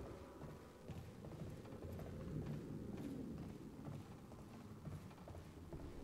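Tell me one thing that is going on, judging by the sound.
Footsteps run across a wooden floor.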